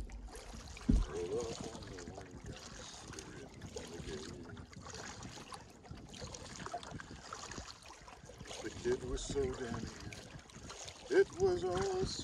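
Water laps gently against the side of a canoe.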